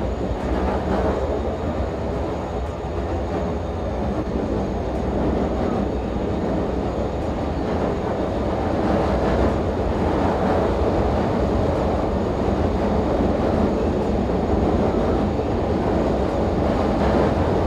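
Train wheels clatter over the rails.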